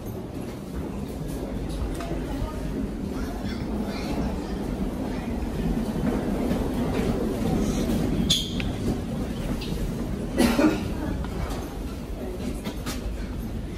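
Suitcase wheels rumble along a hard floor.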